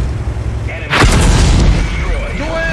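A shell explodes loudly nearby.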